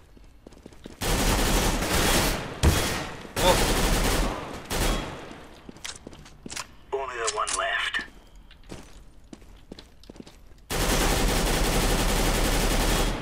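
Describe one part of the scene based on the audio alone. A rifle fires loud rapid bursts.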